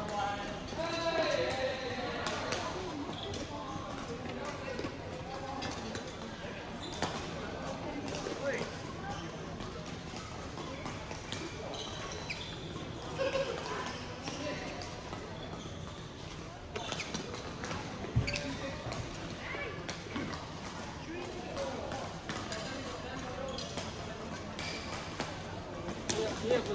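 Shuttlecocks are struck by rackets with sharp pops in a large echoing hall.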